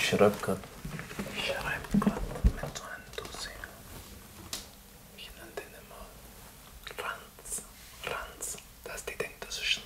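A man speaks calmly and close by, pausing now and then.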